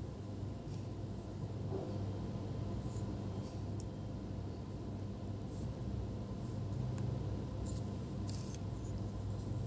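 Fingertips tap and scrape faintly against small plastic parts and a cable.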